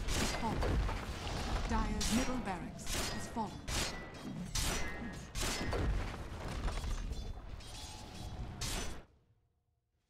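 Magic blasts and sword hits crash and crackle in a busy fight.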